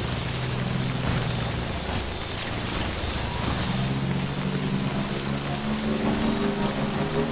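A motorbike engine hums steadily as it rides over rough ground.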